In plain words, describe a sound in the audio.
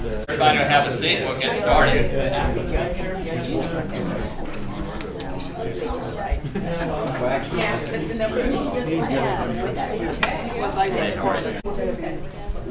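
A crowd of men and women chat in a murmur.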